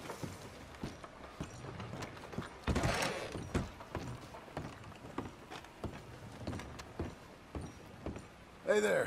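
Boots thud on wooden boards.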